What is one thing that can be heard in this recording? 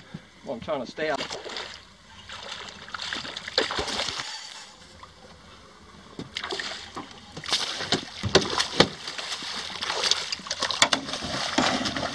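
A fish splashes and thrashes in the water beside a boat.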